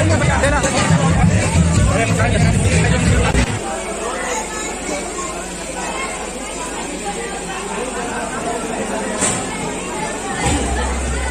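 A crowd of men, women and children chatter loudly all around.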